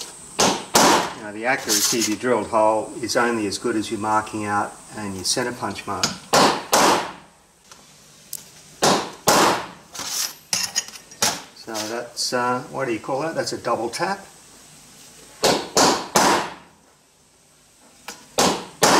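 A hammer strikes a metal punch with sharp ringing blows.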